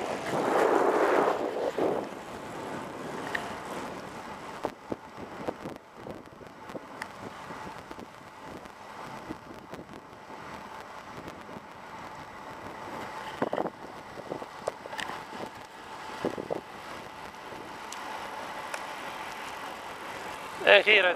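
A bicycle's tyres hum on a paved path.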